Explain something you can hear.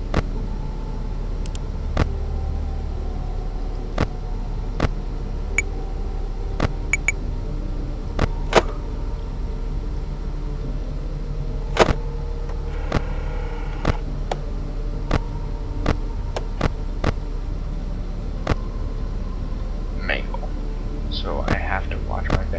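A fan hums steadily.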